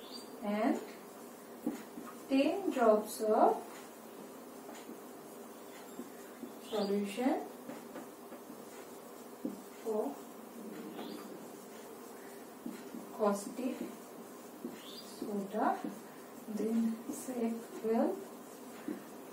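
A woman speaks calmly in short phrases, as if teaching.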